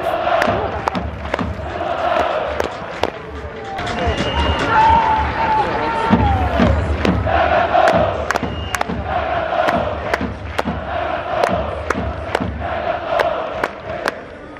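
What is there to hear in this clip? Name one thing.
A large stadium crowd chants loudly in rhythm, outdoors.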